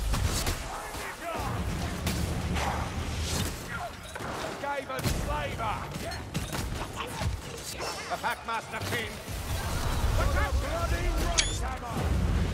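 Blades swing and strike in a close fight.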